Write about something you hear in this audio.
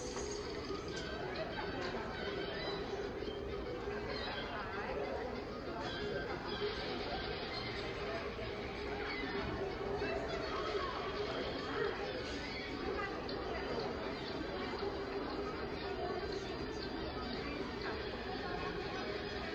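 Lively cartoon music plays through loudspeakers.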